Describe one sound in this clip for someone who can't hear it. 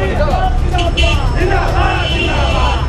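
A crowd murmurs and shouts outdoors.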